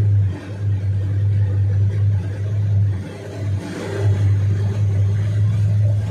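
A truck engine roars as it passes close by through water.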